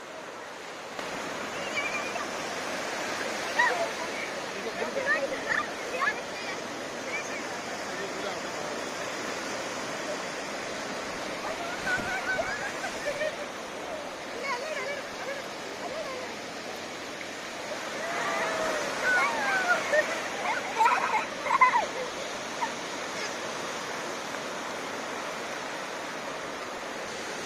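Waves wash and break steadily on a shore.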